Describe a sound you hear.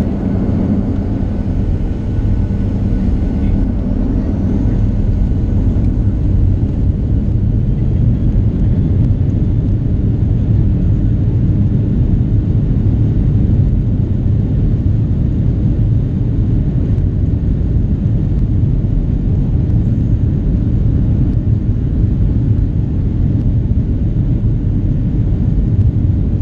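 Jet engines roar steadily as an airliner speeds along a runway, heard from inside the cabin.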